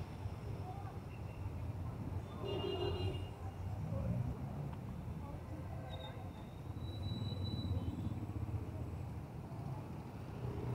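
A motorbike engine runs nearby.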